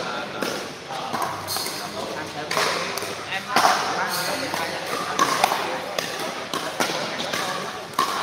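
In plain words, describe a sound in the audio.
A ball bounces on a hard court.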